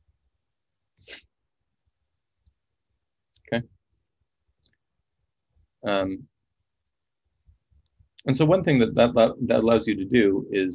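A man speaks calmly and thoughtfully, close to a microphone, with long pauses.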